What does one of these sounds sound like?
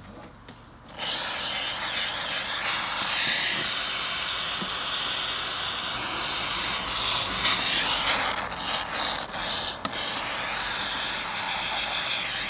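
Spray foam hisses loudly and steadily from a nozzle.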